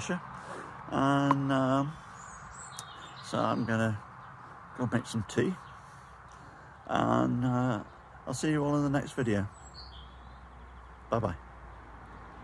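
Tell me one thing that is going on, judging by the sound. An older man talks calmly, close up.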